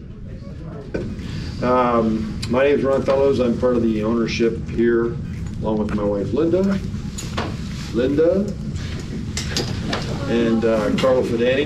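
A man speaks with animation, close by in a room.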